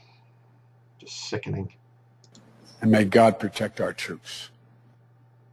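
A man speaks close to a microphone in short bursts.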